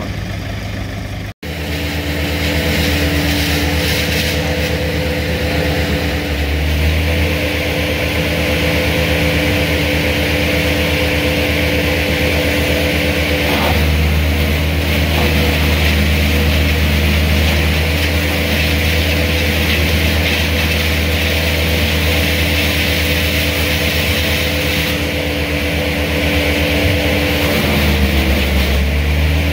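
A truck engine idles steadily nearby.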